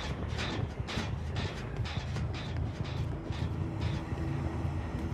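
Heavy footsteps tread steadily through grass.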